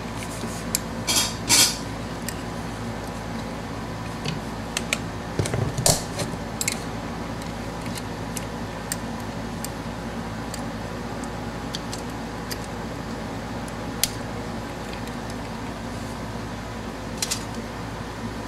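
Small metal carburetor parts click and clink as they are handled.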